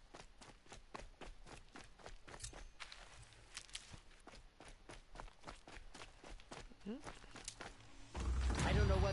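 Footsteps patter quickly on dirt.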